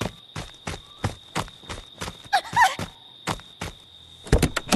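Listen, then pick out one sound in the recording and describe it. Footsteps run quickly over dry leaves.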